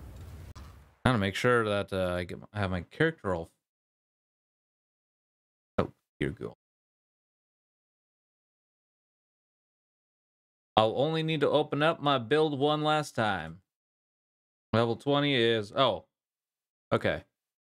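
A young man talks calmly into a close microphone, in bursts with pauses.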